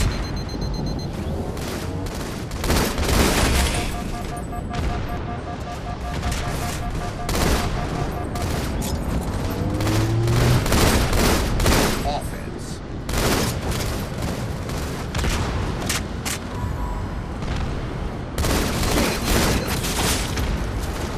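Gunfire from a video game rifle crackles in short bursts.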